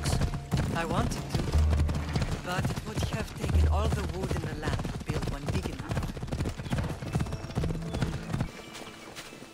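A horse's hooves clop along a dirt path.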